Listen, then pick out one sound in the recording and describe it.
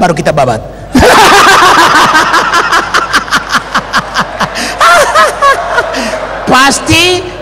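A crowd laughs loudly.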